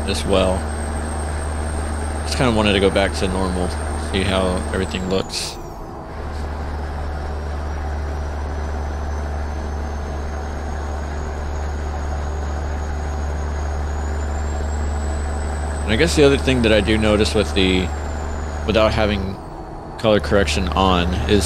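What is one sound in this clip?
A truck engine drones steadily while driving on a highway.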